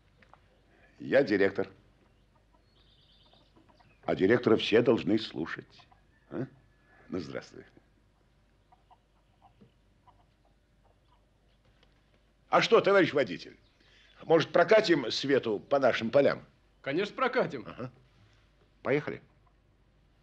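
A man talks calmly and warmly, close by.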